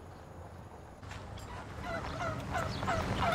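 Turkeys gobble close by.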